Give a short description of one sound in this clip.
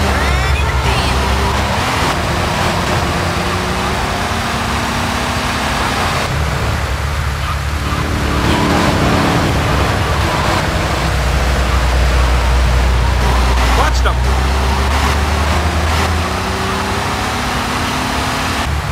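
A car engine hums steadily as a car drives along.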